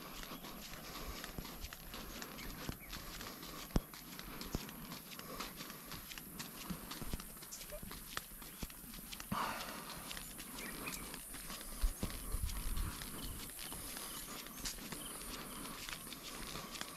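Footsteps tap softly on a path outdoors.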